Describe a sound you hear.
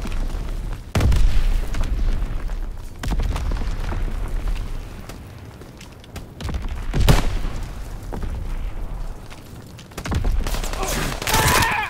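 Rifle shots crack and boom.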